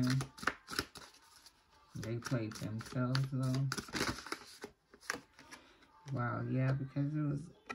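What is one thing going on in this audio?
Playing cards rustle and slide in a hand.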